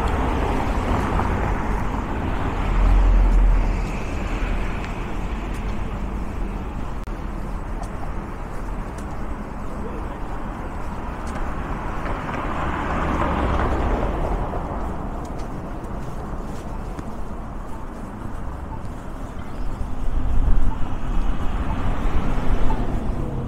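Low wind rumbles outdoors.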